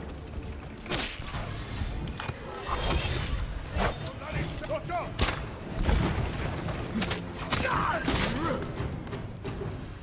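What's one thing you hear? Swords clash and strike.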